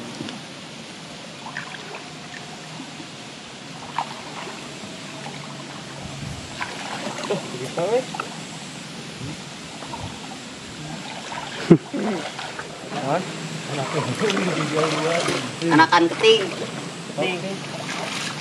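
Water splashes as a person wades through a shallow stream.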